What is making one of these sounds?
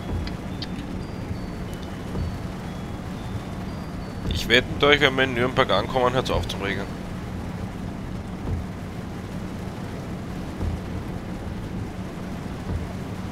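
Rain patters on a windscreen.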